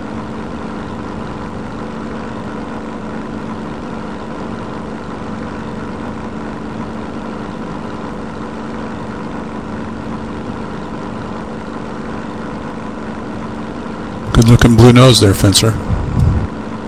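A propeller aircraft engine drones steadily.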